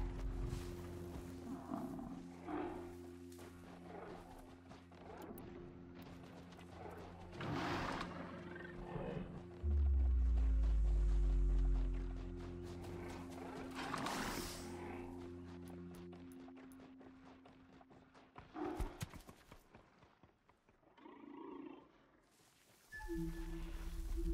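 Tall grass rustles.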